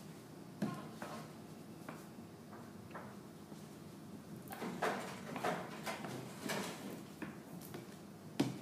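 A wooden roller presses and rolls over a slab of clay with soft thuds and scrapes.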